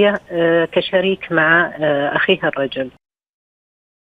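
A woman speaks calmly over a phone line.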